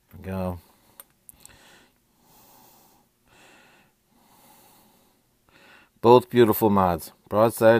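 Metal tubes clink softly against each other as they are handled.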